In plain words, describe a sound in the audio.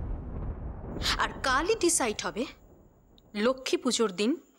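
A young woman speaks sharply and urgently nearby.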